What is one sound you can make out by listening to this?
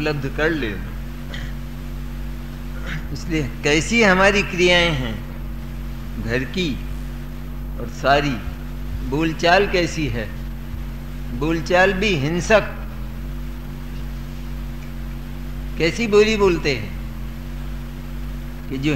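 An elderly man speaks in a slow, sing-song voice into a microphone.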